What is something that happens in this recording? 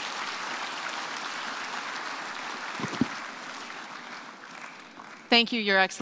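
An audience applauds in a large hall, then fades.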